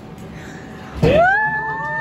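An elderly woman cries out in loud, rising surprise.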